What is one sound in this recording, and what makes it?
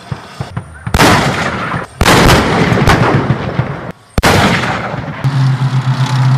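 A tank cannon fires with loud booming blasts.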